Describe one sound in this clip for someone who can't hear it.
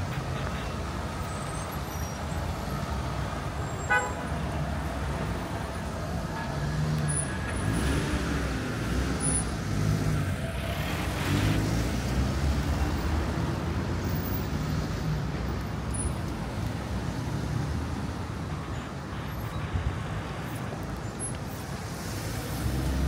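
City traffic hums steadily nearby outdoors.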